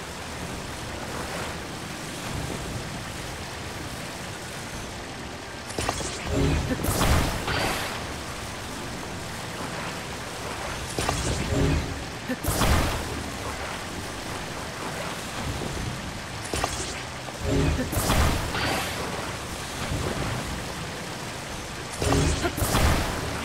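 Molten lava bubbles and hisses steadily.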